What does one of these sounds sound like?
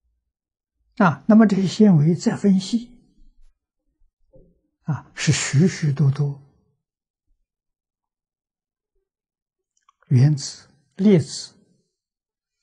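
An elderly man speaks calmly into a nearby microphone, with long pauses.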